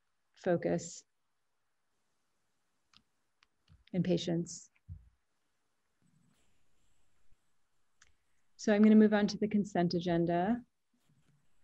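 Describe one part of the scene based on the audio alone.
A woman speaks calmly in short phrases over an online call.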